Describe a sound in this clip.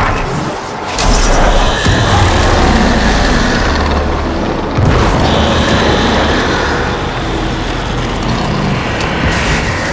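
An energy beam fires with a loud, steady crackling hum.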